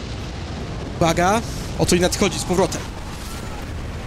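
A huge fiery explosion roars and rumbles.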